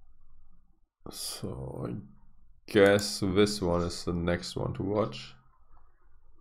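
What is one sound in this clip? A man speaks casually and close to a microphone.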